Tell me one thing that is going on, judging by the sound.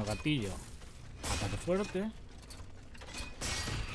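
Metal weapons clash with sharp ringing strikes.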